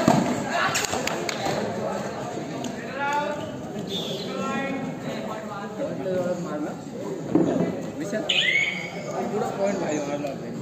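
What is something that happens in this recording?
Young men shout and call out to each other in an open, echoing space.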